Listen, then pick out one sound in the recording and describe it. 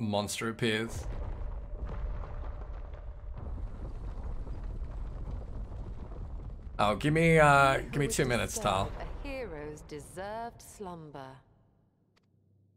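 A heavy stone door grinds open with a deep rumble.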